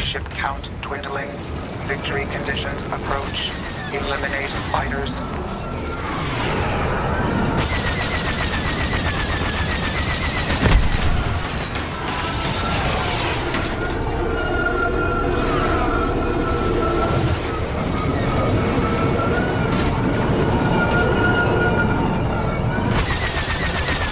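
Laser cannons fire in rapid bursts.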